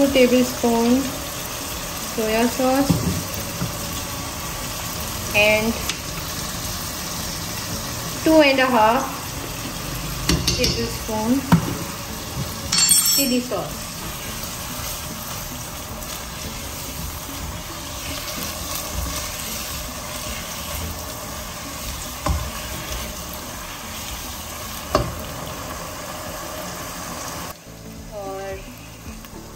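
Food sizzles steadily in a pot.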